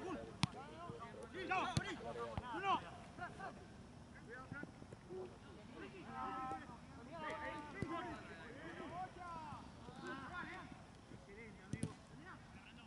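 Young men shout and call to each other across an open outdoor pitch.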